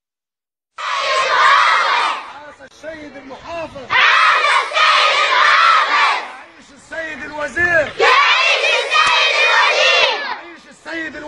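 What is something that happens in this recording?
A crowd of children chants and shouts loudly together outdoors.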